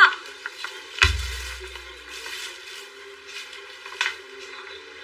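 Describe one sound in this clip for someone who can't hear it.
A plastic water bottle crinkles in a hand.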